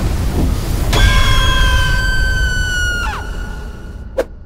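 A young woman screams and wails loudly.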